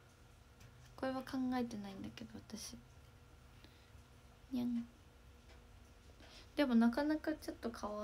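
A young girl speaks softly and close by in a high voice, in short bursts.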